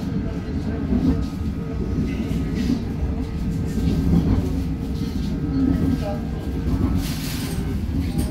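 A train's wheels clatter over rail joints.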